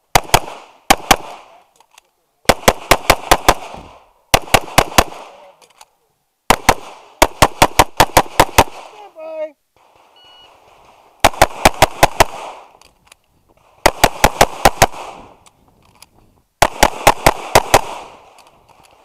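A pistol fires in rapid bursts of sharp, loud shots outdoors.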